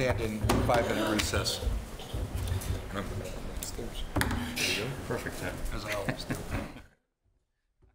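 Several men talk at once, heard through room microphones.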